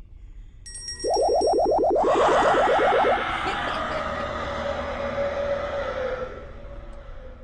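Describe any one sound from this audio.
A large spider creature chitters and screeches loudly.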